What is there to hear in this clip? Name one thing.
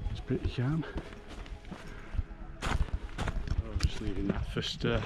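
A man talks calmly and closely.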